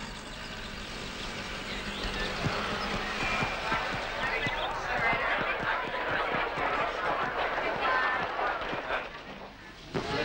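A crowd of children chatters loudly outdoors.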